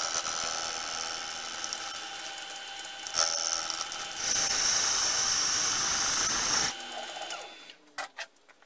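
A metal lathe hums and whirs steadily as it spins.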